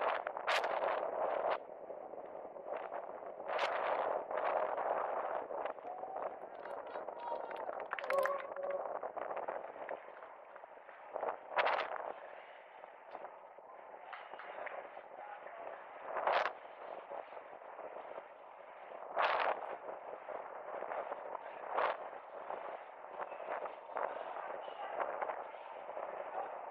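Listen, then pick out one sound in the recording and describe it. Inline skate wheels roll and rumble steadily on asphalt.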